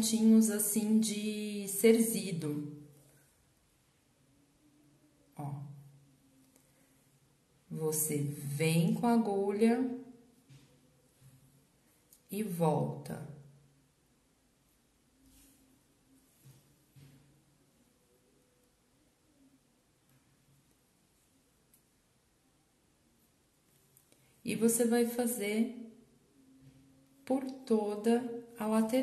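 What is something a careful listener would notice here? Thread rustles softly as it is pulled through fabric.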